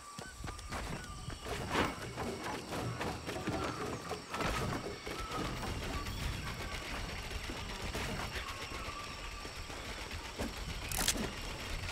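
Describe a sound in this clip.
Wooden panels snap into place with sharp knocks.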